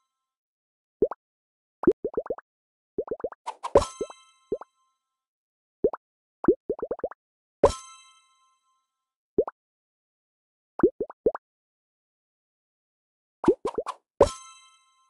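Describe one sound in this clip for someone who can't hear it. Short rising pops sound in quick bursts.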